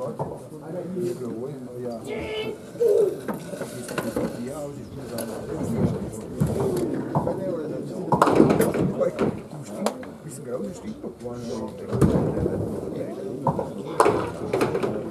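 Heavy balls roll down wooden lanes and crash into pins.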